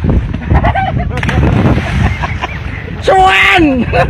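A person jumps and splashes into the water.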